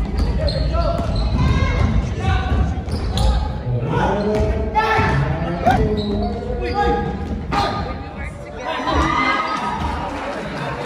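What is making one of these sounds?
Men and women talk and call out nearby in a large echoing hall.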